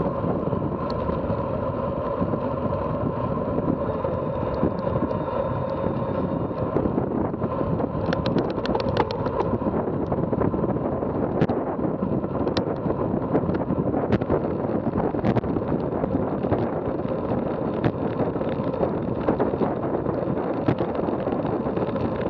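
Wind rushes loudly past a moving bicycle, outdoors.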